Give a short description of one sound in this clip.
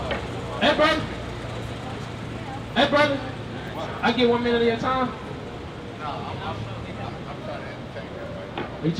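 Traffic hums steadily on a street outdoors.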